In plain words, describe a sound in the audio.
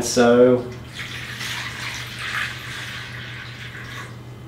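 Water pours and splashes into a container.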